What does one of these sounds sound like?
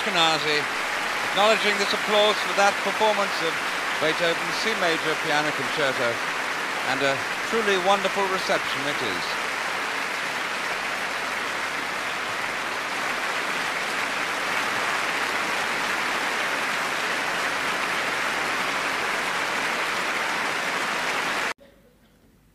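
Applause fills a large hall.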